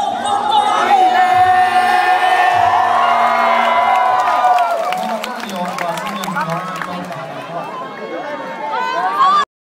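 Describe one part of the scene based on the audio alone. A crowd cheers and shouts nearby.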